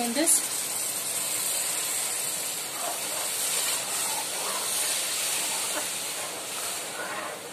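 Water pours into a metal pan with a splashing hiss.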